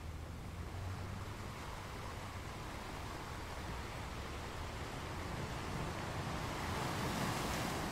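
Ocean waves crash and wash over rocks, growing louder.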